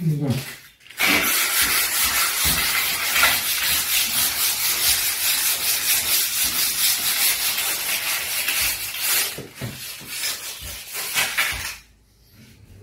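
A hand rubs and scrapes along the edge of a wooden door.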